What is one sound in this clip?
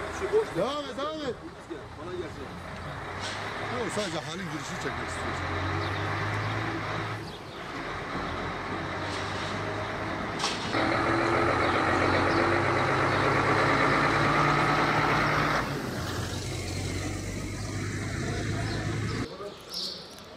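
A truck engine rumbles as the truck drives slowly past.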